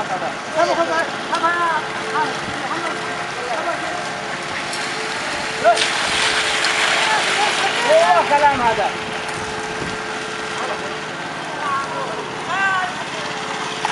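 Men shout and call out nearby, outdoors.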